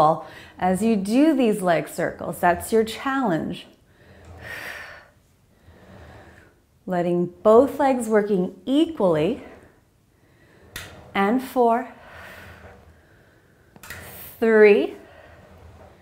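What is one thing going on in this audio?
A woman speaks calmly and clearly close to a microphone, giving instructions.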